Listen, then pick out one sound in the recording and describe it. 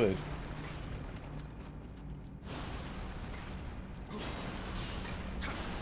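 A sword swishes and clangs in a fight.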